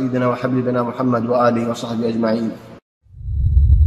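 A man recites in a slow, melodic chant close to a microphone.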